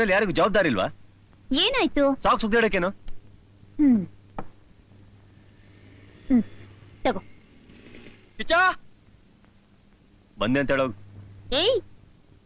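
A man speaks in reply, close by.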